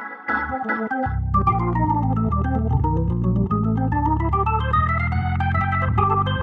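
A deep bass line comes in and rumbles steadily under the keyboard.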